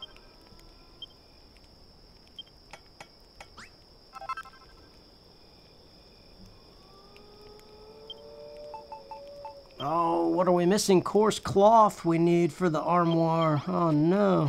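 Short electronic blips sound as menu choices are made.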